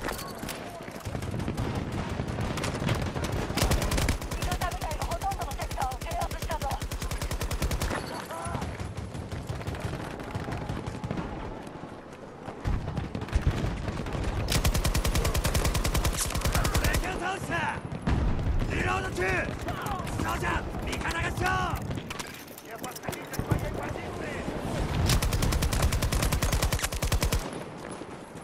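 A machine gun fires long, rapid bursts close by.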